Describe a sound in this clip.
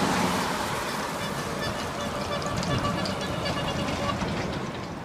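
A truck trailer rattles and clanks as it rolls by.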